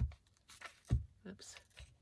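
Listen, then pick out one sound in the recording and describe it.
A glue stick rubs against paper.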